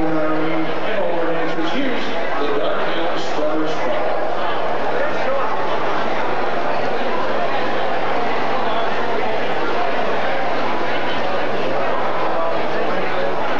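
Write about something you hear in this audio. A big band plays with brass and drums.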